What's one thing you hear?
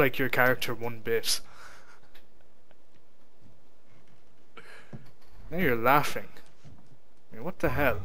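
A young man speaks in a low, frustrated voice, close by.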